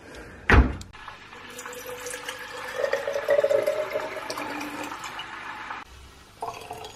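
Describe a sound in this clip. Water pours from a bottle into a plastic bottle.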